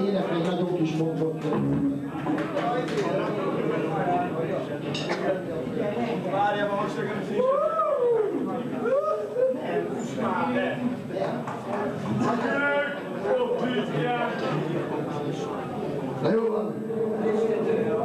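A young man sings loudly into a microphone over a loudspeaker.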